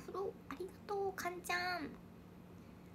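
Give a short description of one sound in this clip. A young woman speaks playfully and close to the microphone.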